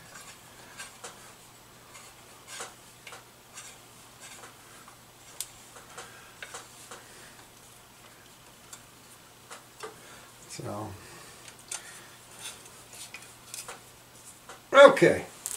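Small metal parts click and tap.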